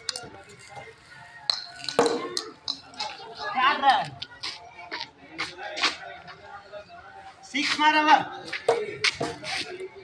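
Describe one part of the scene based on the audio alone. Young children shout and call out to each other outdoors.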